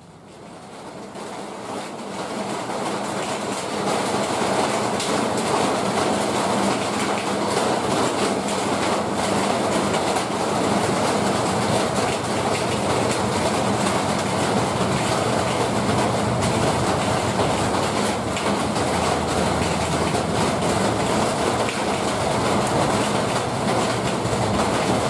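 A diesel locomotive engine rumbles as it slowly approaches.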